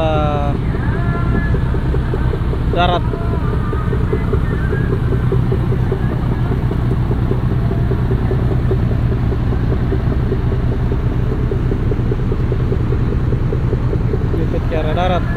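A boat engine rumbles steadily close by.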